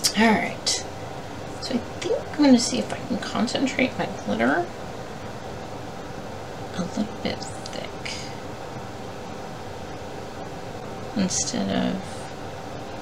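A woman talks calmly and close to a microphone.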